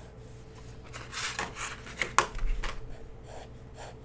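Paper rustles and slides on a mat.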